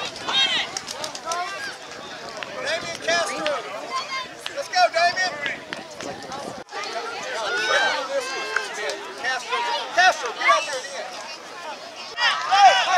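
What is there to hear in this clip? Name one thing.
Several young children chatter and shout excitedly close by, outdoors.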